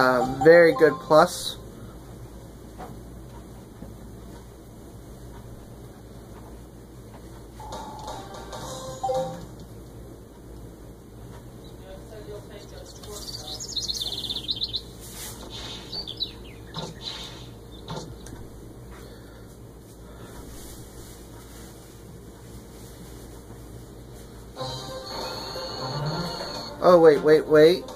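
Video game music and electronic sound effects play from a television.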